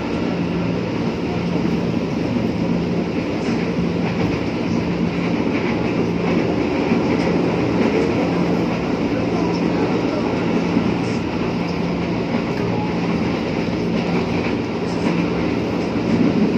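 A train rumbles steadily along the rails from inside a carriage.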